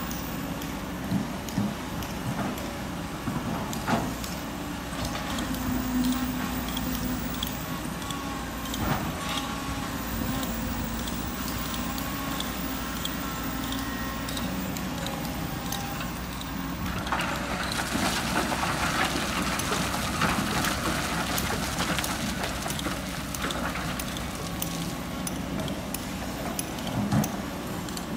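A diesel excavator engine rumbles steadily.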